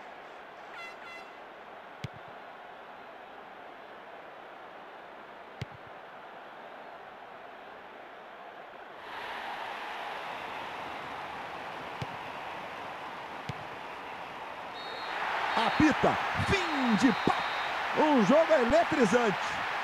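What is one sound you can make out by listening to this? A large stadium crowd roars, swelling into loud cheering.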